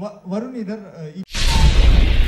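A young man speaks cheerfully into a microphone.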